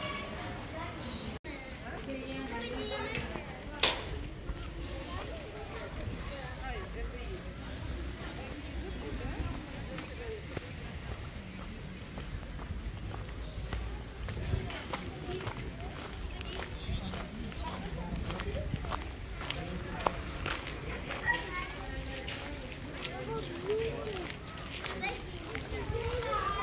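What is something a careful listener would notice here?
Footsteps tread on paving outdoors.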